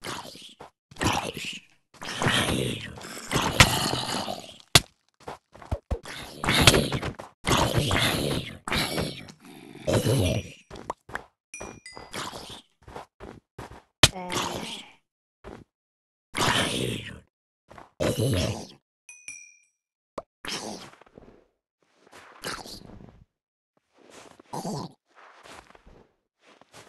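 Blocks crunch and break under a pickaxe.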